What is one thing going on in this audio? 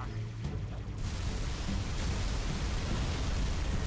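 Explosions roar and rumble loudly.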